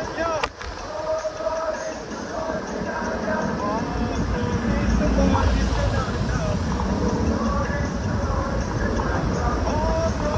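Traffic rumbles steadily along a wet street.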